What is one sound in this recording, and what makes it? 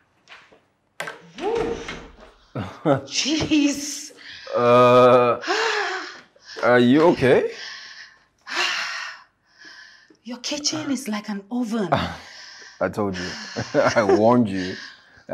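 A young woman speaks loudly and with animation close by.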